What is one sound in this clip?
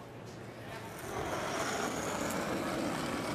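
A curling stone rumbles as it slides over ice.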